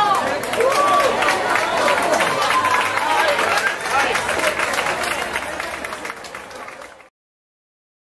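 Boots shuffle and stamp on a hard floor as a group dances.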